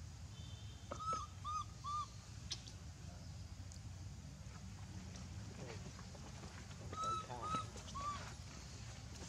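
A baby monkey squeaks in short, high calls.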